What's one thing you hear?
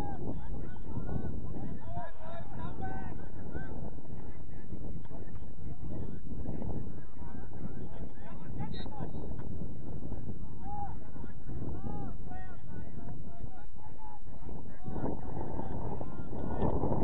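Young men shout to one another in the distance.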